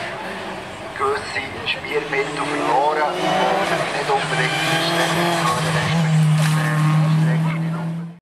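A second racing car engine screams and revs hard as the car climbs and races past close by.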